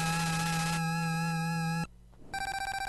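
A bright electronic game jingle plays.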